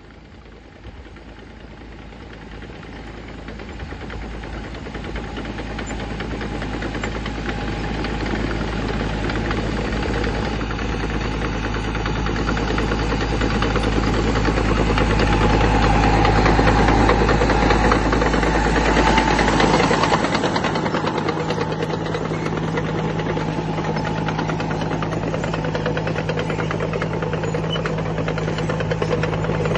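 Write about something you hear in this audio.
A tractor engine rumbles steadily, drawing closer and growing louder.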